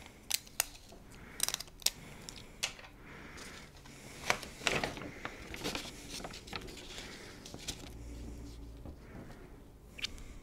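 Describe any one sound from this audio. Paper rustles and crinkles in handling.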